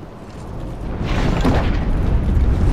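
A heavy wooden chest creaks open.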